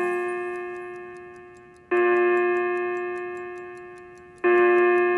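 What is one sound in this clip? A clock chimes with ringing strokes that slowly fade.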